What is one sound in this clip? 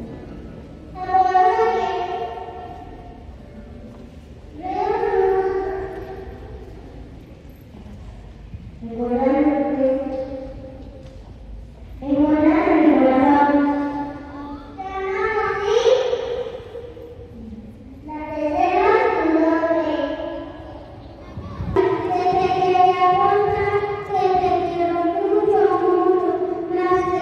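A group of children sings together in phrases, echoing in a large hall.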